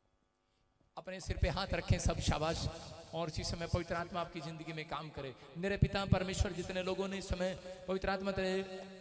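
A man speaks loudly through a microphone.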